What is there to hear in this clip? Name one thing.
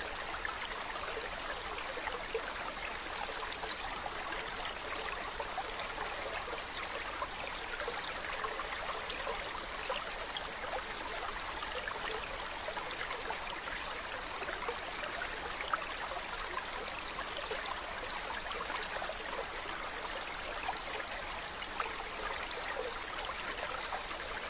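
Shallow stream water trickles and babbles steadily over rocks.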